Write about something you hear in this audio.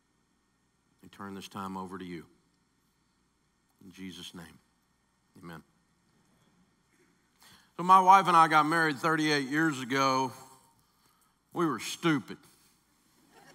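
A middle-aged man speaks slowly and emotionally into a microphone, with long pauses.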